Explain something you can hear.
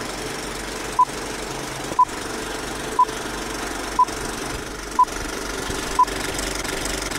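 A countdown beeps once each second.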